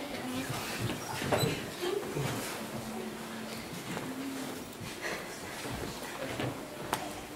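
A man speaks calmly into a microphone, heard through loudspeakers in an echoing hall.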